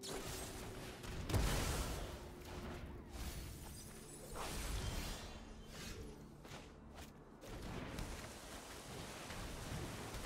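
A game's magical whoosh effect plays.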